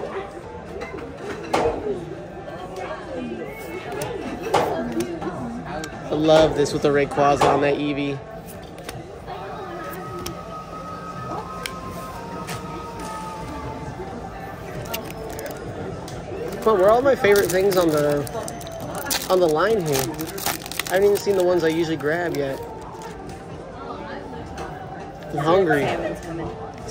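Cards rustle as hands handle them.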